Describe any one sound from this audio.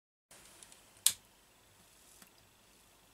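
A lighter clicks and flares.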